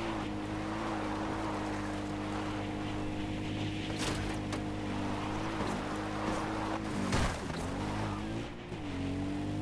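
A quad bike engine hums steadily and changes pitch as it drives.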